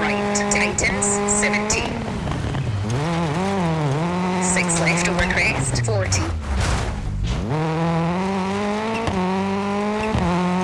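A rally car engine roars and revs up and down as it shifts gears.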